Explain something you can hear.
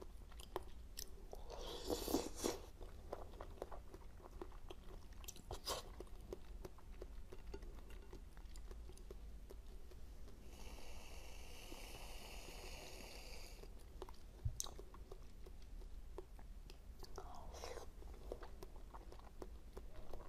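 A young woman chews soft jelly sweets with wet, squishy mouth sounds close to a microphone.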